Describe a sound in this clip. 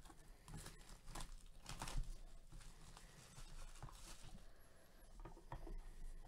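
Plastic wrap crinkles and rustles as hands tear it off a box.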